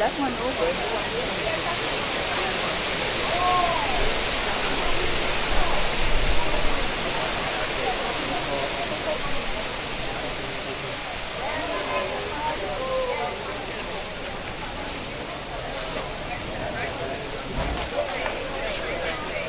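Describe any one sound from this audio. A crowd of men and women chatter outdoors nearby.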